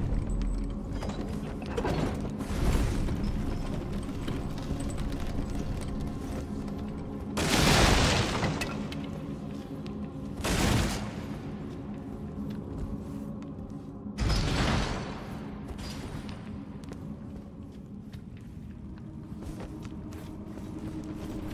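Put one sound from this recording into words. Footsteps thud on wooden boards and crunch on gravel.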